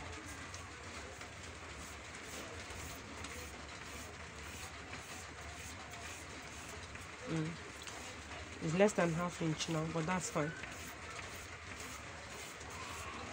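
Chalk scrapes lightly across paper.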